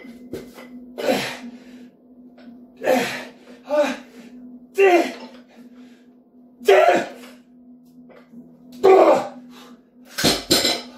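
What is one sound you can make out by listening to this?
A man grunts and strains loudly with each lift, close by.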